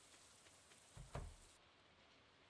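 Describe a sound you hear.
A wooden door opens and shuts.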